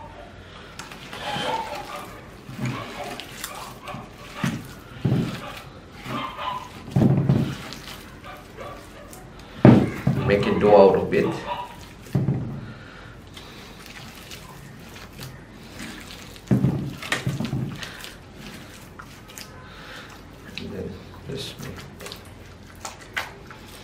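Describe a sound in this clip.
Gloved hands squish and press wet soil.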